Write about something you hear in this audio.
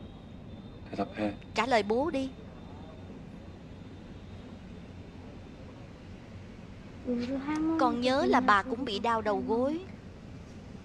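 A young child answers quietly and close by.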